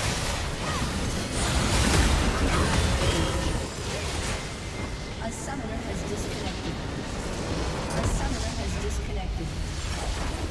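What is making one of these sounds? Magic spell effects crackle and boom in a fast, busy battle.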